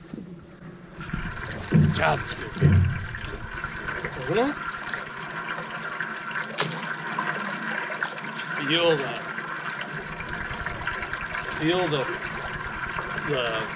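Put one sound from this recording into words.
Water laps against a canoe.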